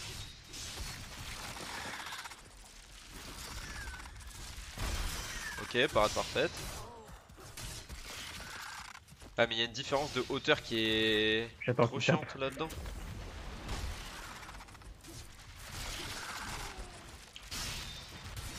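Sword blows and magic blasts ring out.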